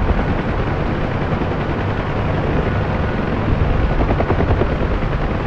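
A helicopter's engine roars steadily.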